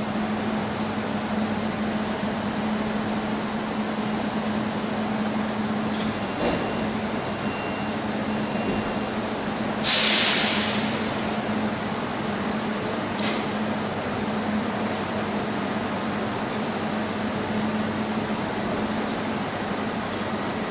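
An electric locomotive hums steadily as it rolls slowly into a station.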